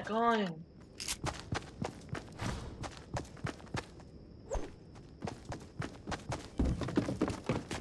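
Footsteps tap quickly on hard ground and wooden stairs.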